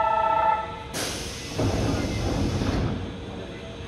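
A subway train hisses loudly as air is released from its brakes.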